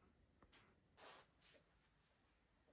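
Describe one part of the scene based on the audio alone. Tissue paper rustles as fruit is lifted from a box.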